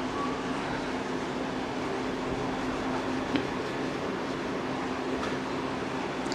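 A cloth eraser rubs across a whiteboard.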